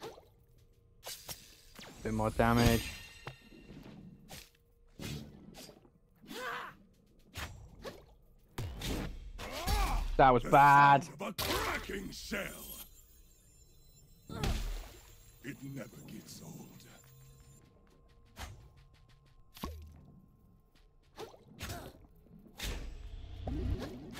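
Sharp slashing hits land in quick bursts.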